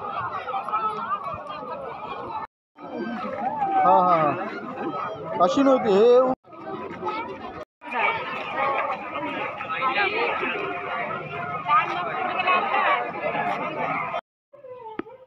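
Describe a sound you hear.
A crowd of people chatter loudly outdoors.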